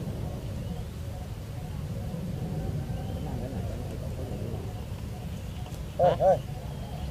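Wind blows and rumbles steadily outdoors.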